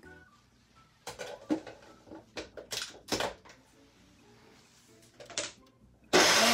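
A plastic lid and jar clatter and knock.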